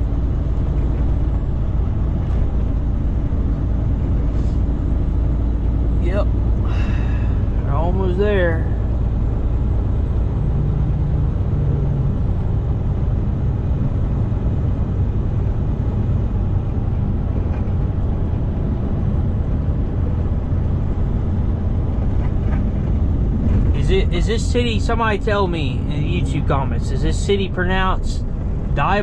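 A truck engine drones steadily inside the cab while driving.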